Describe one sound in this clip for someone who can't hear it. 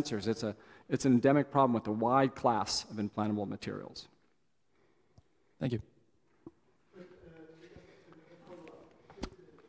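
A man lectures calmly through a microphone.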